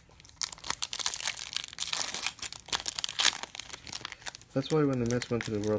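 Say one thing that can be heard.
A foil wrapper crinkles and tears.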